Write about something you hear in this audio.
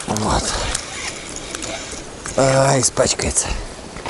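A fishing reel clicks as its handle is wound.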